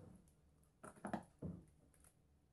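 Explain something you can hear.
Scissors snip once.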